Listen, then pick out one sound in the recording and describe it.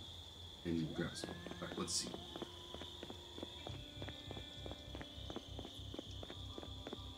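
Footsteps tap steadily.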